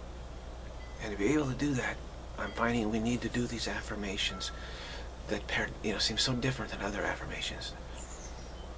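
A middle-aged man speaks calmly and close by.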